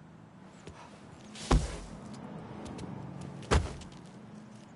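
Footsteps thud as a man hurries along.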